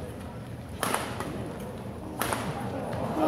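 A racket smacks a shuttlecock sharply in a large echoing hall.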